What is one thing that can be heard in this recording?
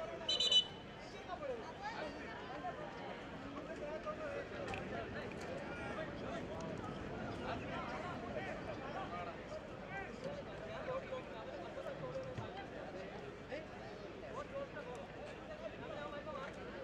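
A large crowd of spectators chatters and calls out outdoors.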